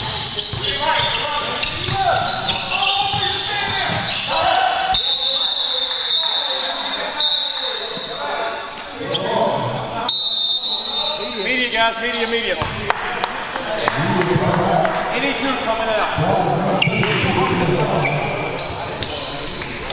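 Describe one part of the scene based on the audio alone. Men's voices call out across an echoing gym.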